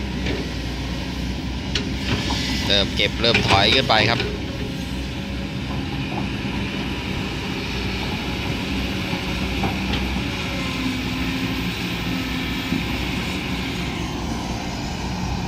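A diesel excavator engine rumbles steadily outdoors.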